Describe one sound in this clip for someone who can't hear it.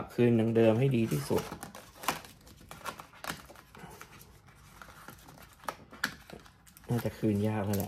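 Paper and cardboard rustle and tap as they are handled close by.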